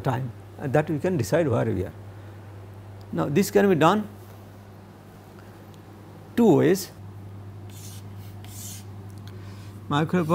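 A middle-aged man explains calmly, close to a microphone, in short phrases with pauses.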